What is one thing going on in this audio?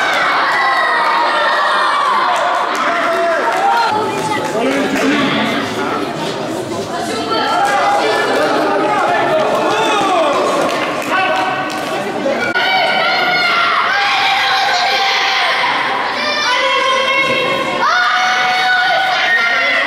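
Children shout and cheer in a large echoing hall.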